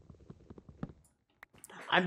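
A wooden block cracks and breaks apart.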